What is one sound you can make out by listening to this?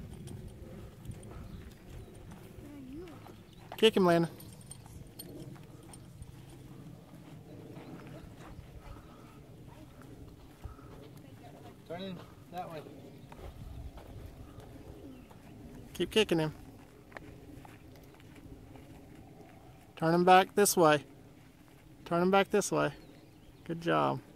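A horse walks on sand, its hooves thudding softly.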